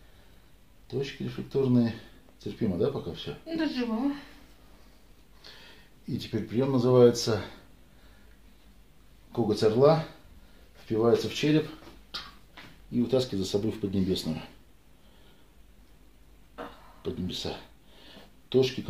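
A man speaks calmly close by, in short phrases with pauses.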